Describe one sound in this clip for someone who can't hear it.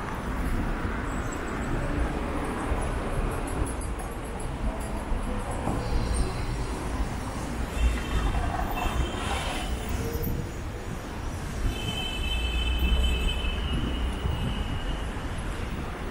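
Traffic murmurs steadily outdoors in the city.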